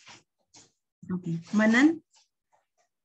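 A young woman speaks briefly and calmly, close to the microphone.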